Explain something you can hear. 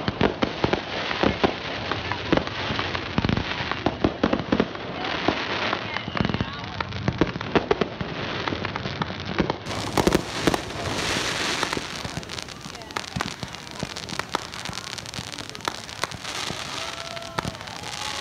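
Fireworks bang and pop in the distance.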